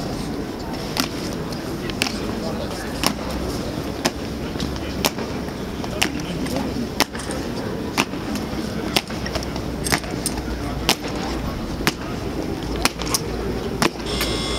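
Boots stamp in a steady marching rhythm on stone paving.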